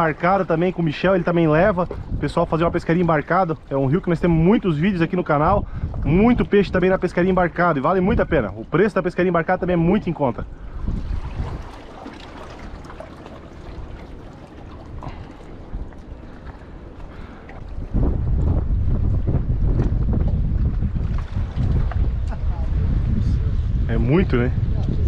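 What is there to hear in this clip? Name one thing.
Small waves lap against rocks.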